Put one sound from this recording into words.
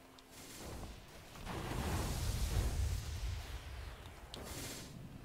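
Game blasts whoosh and rumble.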